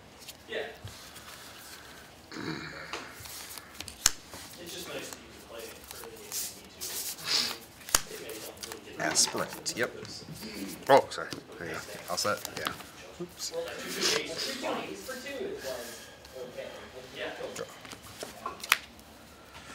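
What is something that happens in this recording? Playing cards are tapped and slid softly onto a cloth mat.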